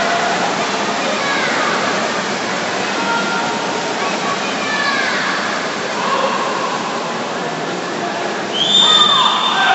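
A crowd of spectators cheers in a large echoing hall.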